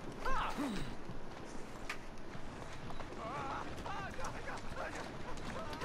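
A horse-drawn carriage rattles over cobblestones.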